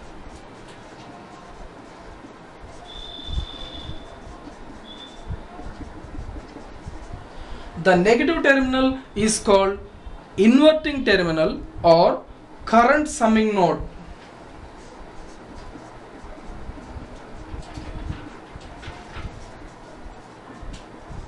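A marker squeaks and scratches across paper in short strokes.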